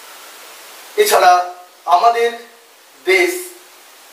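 A young man speaks calmly and clearly close to a microphone.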